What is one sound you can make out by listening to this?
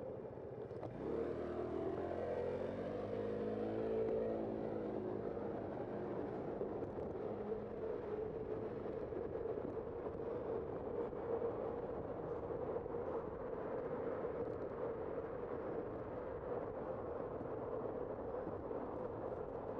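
Wind rushes loudly past while riding.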